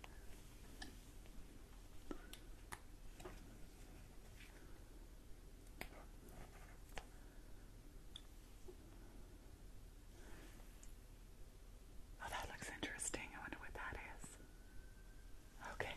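A stiff card rustles as it is handled.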